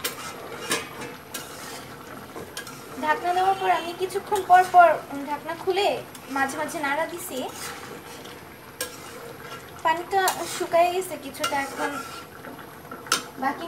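A spatula scrapes and knocks against a metal pot.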